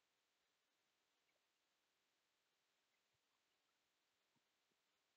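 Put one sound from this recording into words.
Hands softly rustle and handle a small knitted doll.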